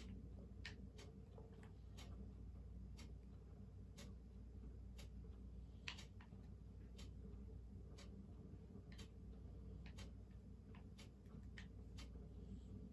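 Video game sounds play quietly from a television.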